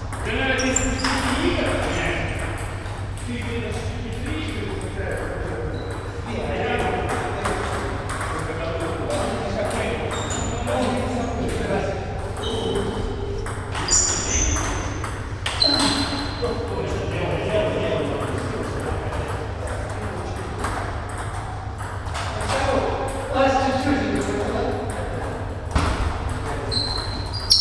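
Table tennis balls click sharply off paddles and tables in quick rallies.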